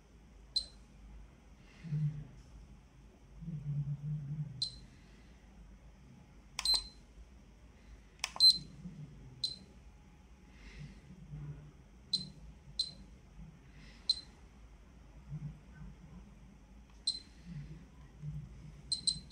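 A radiation meter gives short, high beeps at uneven intervals.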